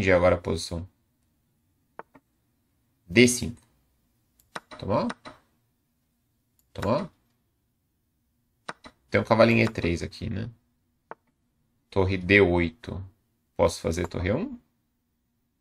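A man speaks calmly in short phrases close to a microphone.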